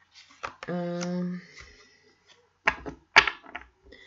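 A card is laid down on a table with a soft tap.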